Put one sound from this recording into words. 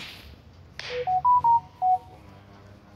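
A phone notification chime sounds.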